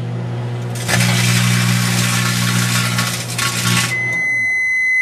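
A microwave oven hums loudly.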